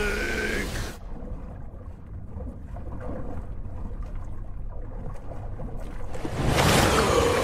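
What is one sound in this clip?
Muffled water rumbles and bubbles underwater.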